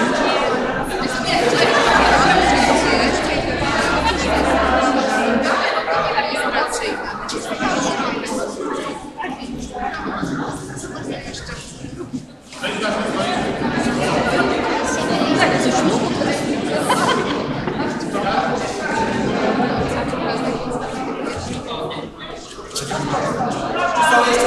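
A crowd of people talks in a large echoing hall.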